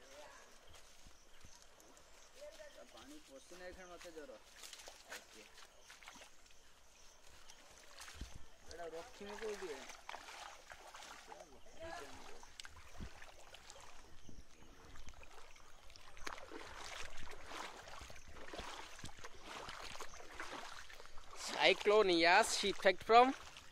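Floodwater laps and trickles gently outdoors.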